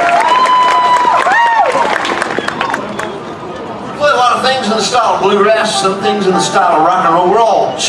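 A country band plays lively music.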